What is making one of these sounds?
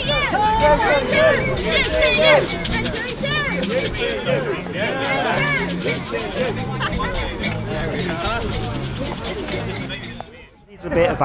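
A crowd of men and women chants and shouts loudly outdoors.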